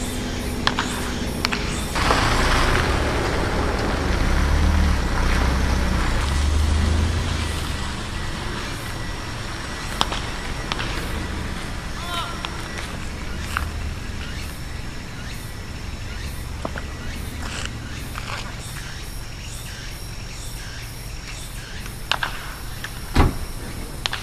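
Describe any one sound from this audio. A bat cracks sharply against a baseball, again and again.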